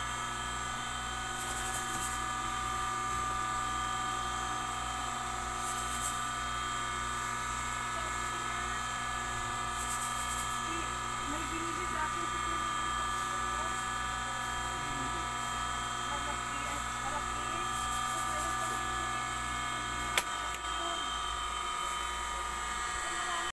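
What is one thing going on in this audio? Fabric rustles as hands move it.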